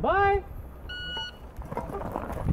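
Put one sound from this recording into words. An electronic shot timer beeps sharply.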